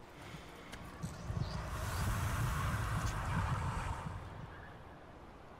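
Wind blows outdoors in gusts.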